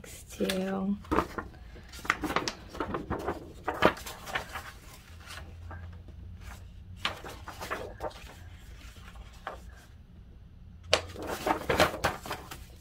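A folded paper sheet crinkles and rustles as hands unfold it.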